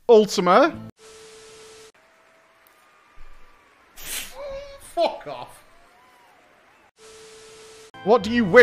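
Static hisses in short bursts.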